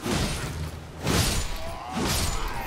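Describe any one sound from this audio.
A fiery blast bursts with a loud crack.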